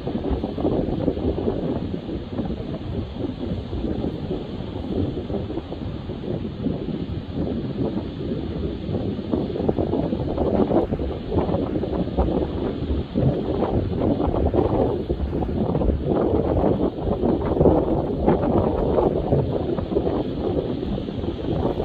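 Strong wind blows and buffets loudly outdoors.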